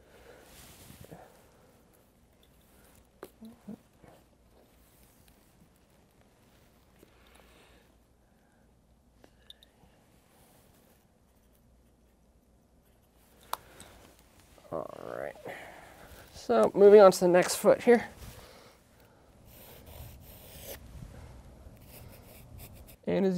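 A pencil scratches faintly on paper.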